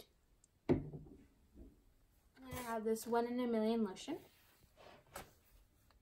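Plastic bottles clack as they are set down on a table.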